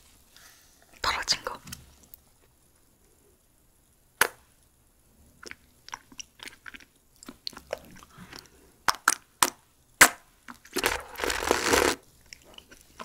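A young woman eats close to a microphone with wet, crunchy chewing sounds.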